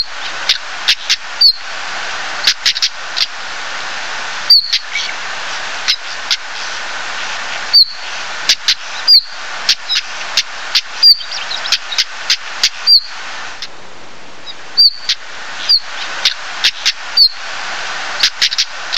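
A small bird repeatedly gives sharp, clicking calls close by.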